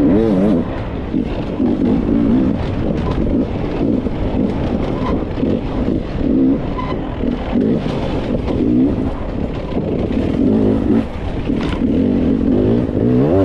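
A motorbike engine revs and roars up and down close by.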